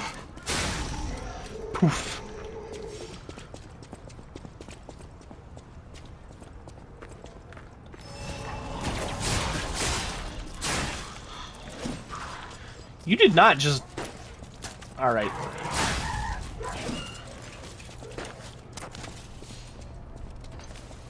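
Footsteps crunch on cobblestones.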